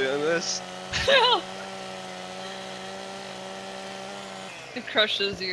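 A chainsaw engine hums steadily.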